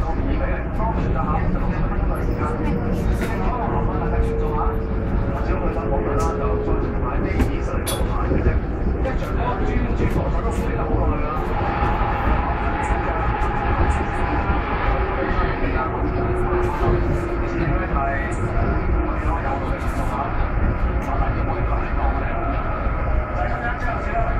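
A subway train rumbles loudly along the tracks.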